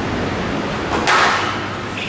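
A squash racket strikes a ball.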